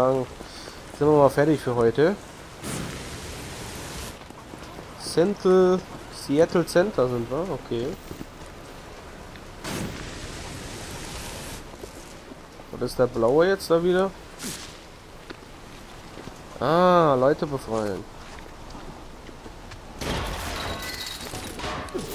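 Fire bursts crackle and roar.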